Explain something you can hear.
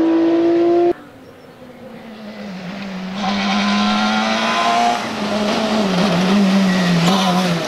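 A rally car engine roars as it speeds closer, growing louder.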